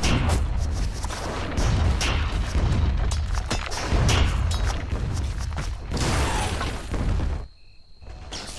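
Fantasy battle sound effects crackle and boom.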